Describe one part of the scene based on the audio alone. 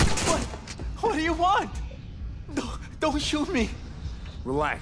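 A man pleads in a frightened, shaky voice close by.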